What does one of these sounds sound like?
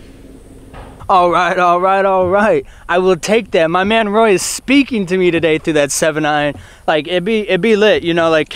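A young man talks excitedly and laughs close to the microphone.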